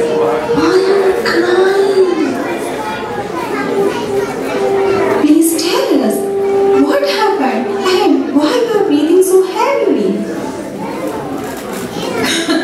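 A woman speaks with strong emotion, heard from a distance in a large room.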